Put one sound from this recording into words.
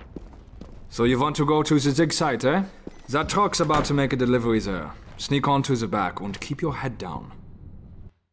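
A man speaks gruffly up close.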